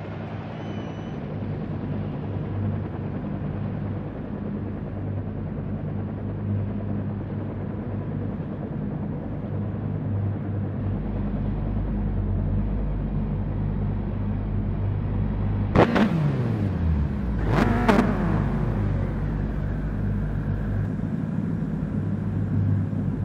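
Racing car engines idle with a steady low rumble.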